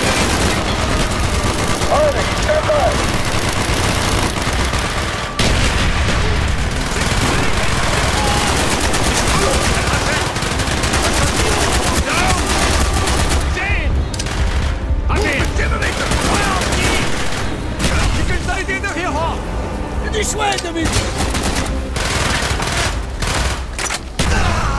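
Rifles fire in rapid bursts with loud bangs.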